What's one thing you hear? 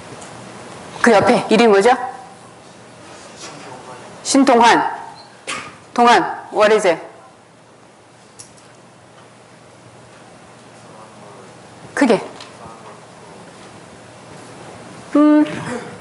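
A young woman speaks calmly into a microphone over loudspeakers in a large hall, with long pauses.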